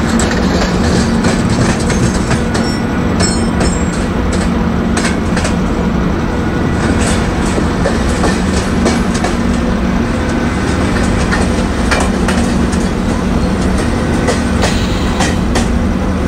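An electric locomotive hums and rumbles steadily as it travels.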